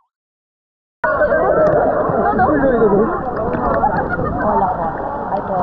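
Water laps and splashes at the surface outdoors.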